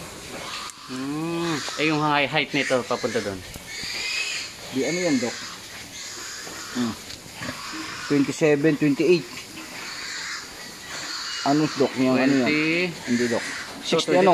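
A pig squeals loudly nearby.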